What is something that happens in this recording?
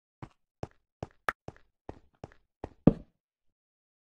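Blocks are placed in quick succession with short, dull knocks.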